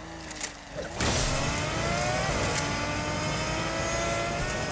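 A car engine revs up loudly and roars as the car speeds off.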